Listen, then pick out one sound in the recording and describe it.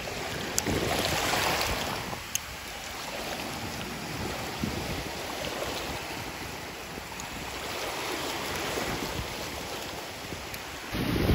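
Shallow water laps and trickles gently.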